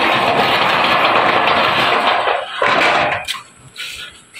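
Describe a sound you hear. A cloth scrubs against a metal gate with a rough rasping sound.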